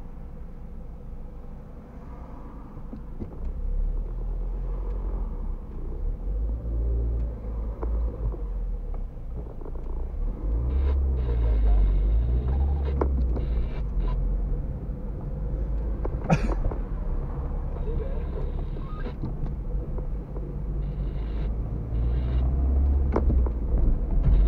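A car engine hums low from inside the car.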